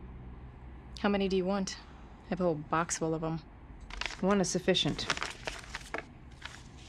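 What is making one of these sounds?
A woman speaks softly and hesitantly.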